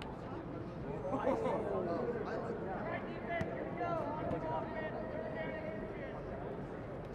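A man shouts out on an open field.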